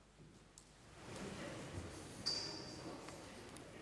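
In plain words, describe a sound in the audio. An elderly man speaks calmly in a large echoing room.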